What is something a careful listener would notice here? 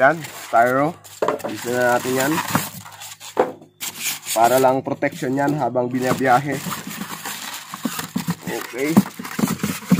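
Plastic wrapping crinkles as hands handle it.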